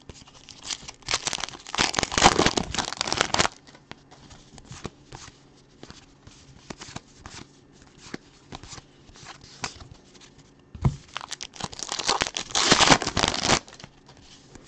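A plastic wrapper crinkles and tears open.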